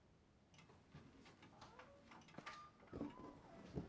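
A door clicks shut.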